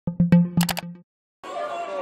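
A short bright electronic chime plays.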